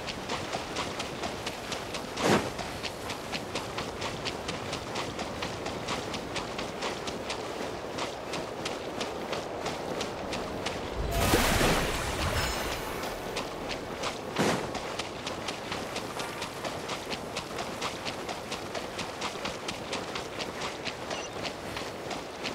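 Quick footsteps patter and splash across shallow water.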